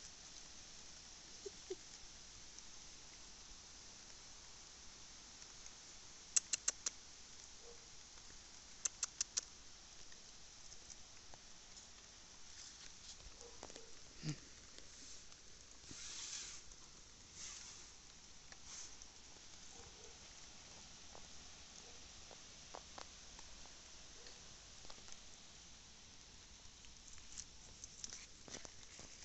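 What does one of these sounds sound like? Twigs and leaves rustle close by as a cat climbs through a tree.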